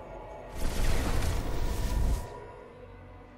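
A loud rushing whoosh of a magic effect bursts out and cuts off.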